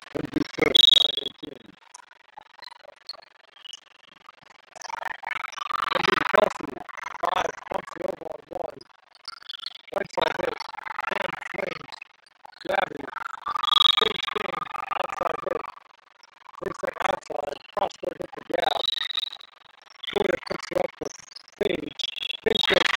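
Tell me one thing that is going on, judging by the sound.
Players' shoes squeak sharply on a hard court in a large echoing hall.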